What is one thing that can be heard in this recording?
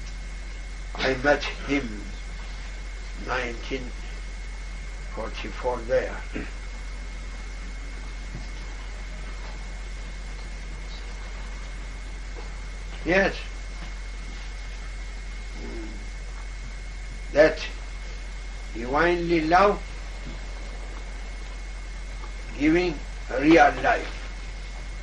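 An elderly man speaks slowly and calmly in short phrases, with long pauses between them.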